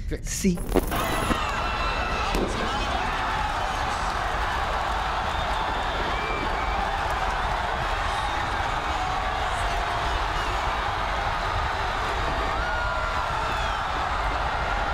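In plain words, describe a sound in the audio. A crowd roars and cheers in a large arena.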